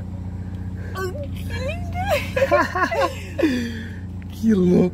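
A young woman laughs and talks close by.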